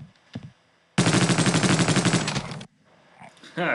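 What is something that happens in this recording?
A machine gun fires a long burst.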